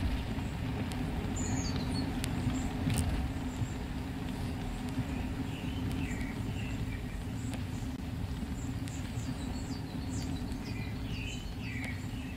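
A vehicle engine hums steadily in the distance.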